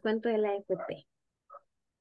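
A woman speaks briefly and calmly into a microphone.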